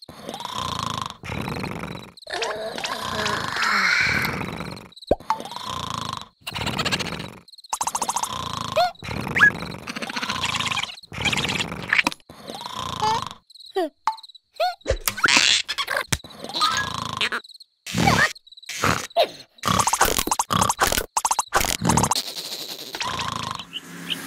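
A cartoon character groans and babbles in a silly, exaggerated voice.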